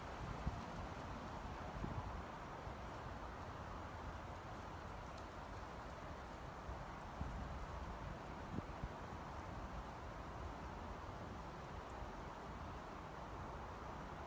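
Wind blows steadily outdoors, rumbling close by.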